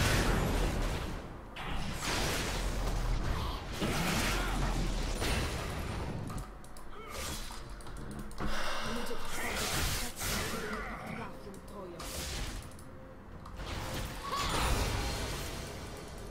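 Video game battle sounds clash and whoosh.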